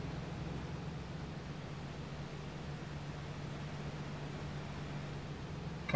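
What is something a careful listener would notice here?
A car engine hums steadily as the vehicle drives along a road.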